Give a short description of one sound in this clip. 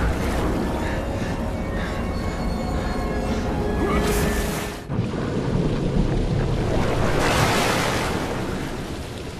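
A great wave of water rushes and roars.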